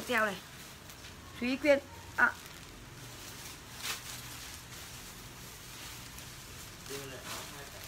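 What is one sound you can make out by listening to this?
A young woman cries out and wails nearby.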